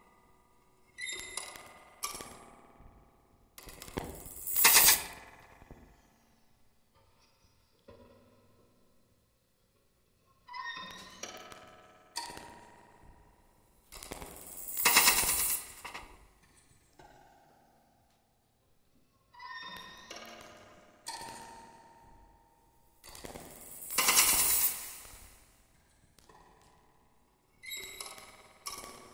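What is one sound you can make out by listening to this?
A drummer plays pitched drums in short bursts with pauses between them.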